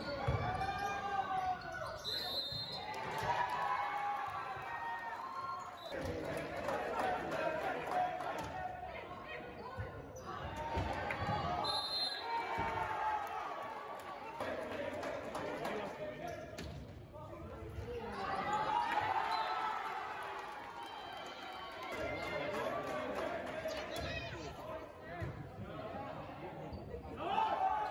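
Sneakers squeak on the gym floor.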